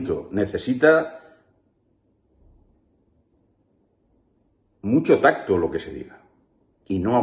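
A middle-aged man speaks calmly and closely into a microphone, pausing between phrases.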